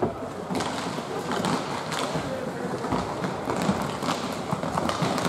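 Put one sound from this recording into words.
Skates scrape and swish on ice.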